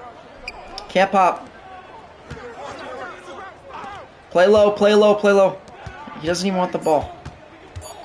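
A young man talks loudly and excitedly into a close microphone.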